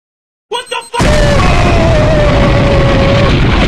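A large explosion booms and roars.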